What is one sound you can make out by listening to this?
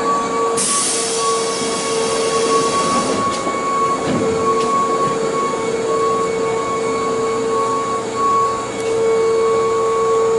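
A train pulls away, rolling and rumbling along the track.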